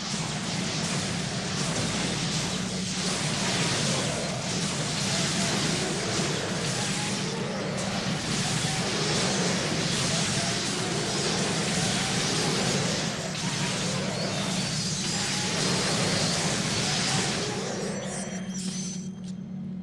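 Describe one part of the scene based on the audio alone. Magic spells crackle and hiss in a loud fight.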